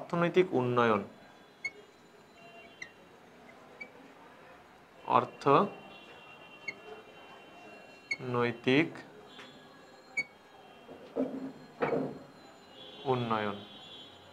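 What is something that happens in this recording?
A marker squeaks on a glass board.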